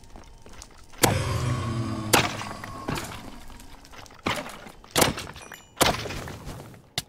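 A sword swings and strikes a monster.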